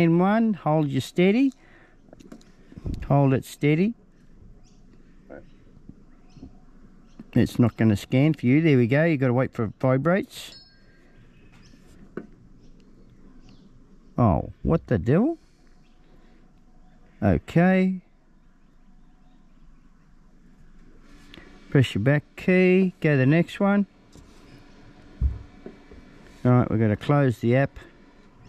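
A man talks calmly up close in short bursts.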